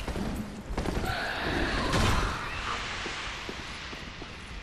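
A heavy metal gate creaks open.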